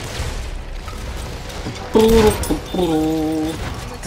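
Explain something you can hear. An explosion booms and rubble crashes down.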